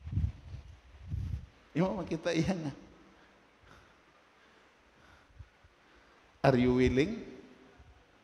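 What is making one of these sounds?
An elderly man speaks through a microphone in short bursts with long pauses.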